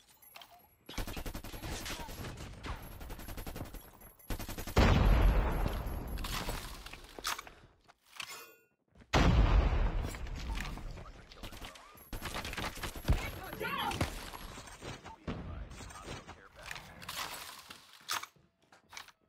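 Gunfire from a video game rattles in rapid bursts.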